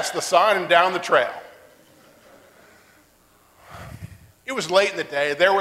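A middle-aged man preaches with animation through a microphone in an echoing hall.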